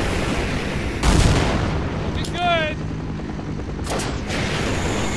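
A rocket launches with a loud whoosh.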